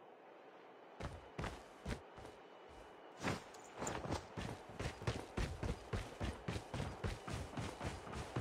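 Quick footsteps run over the ground.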